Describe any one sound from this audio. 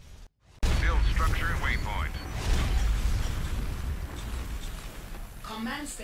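Energy weapons crackle and zap loudly.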